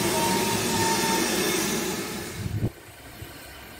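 A steam locomotive rumbles loudly past at close range.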